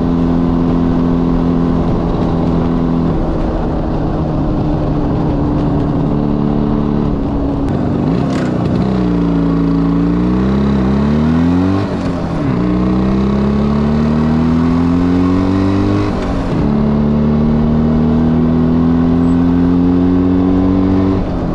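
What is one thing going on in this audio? A motorcycle engine roars close by, its pitch rising as it speeds up and dropping with each gear change.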